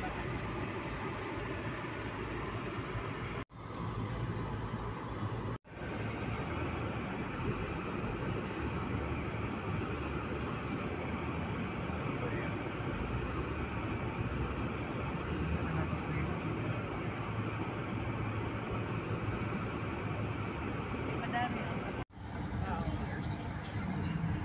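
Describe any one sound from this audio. A car's engine and tyres rumble steadily on the road from inside the car.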